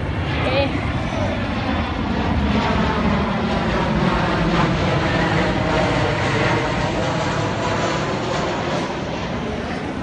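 A jet plane roars low overhead.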